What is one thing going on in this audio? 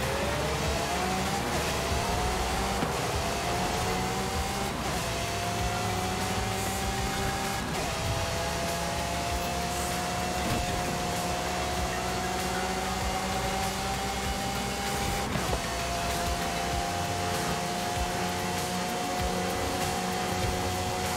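A high-revving car engine roars, climbing in pitch and dropping sharply with each gear change.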